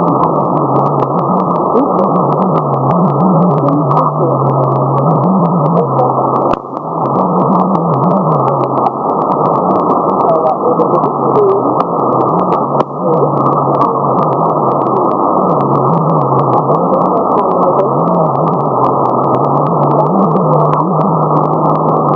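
A shortwave radio hisses with dense, crackling static.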